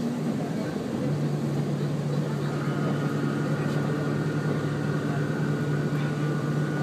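A train's motor hums steadily, rising in pitch.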